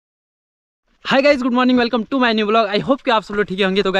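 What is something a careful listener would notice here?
A young man speaks with animation close to the microphone.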